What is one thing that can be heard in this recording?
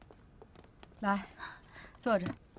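A woman calls out loudly with a raised voice.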